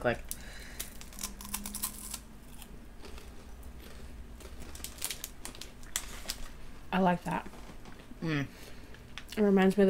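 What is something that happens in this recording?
A young woman crunches food while chewing.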